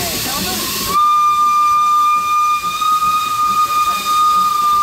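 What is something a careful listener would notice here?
A steam train's whistle blows loudly and steadily.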